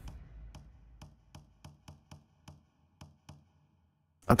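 Soft clicks tick one after another.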